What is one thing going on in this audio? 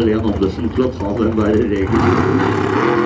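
A dragster engine idles and pops loudly nearby.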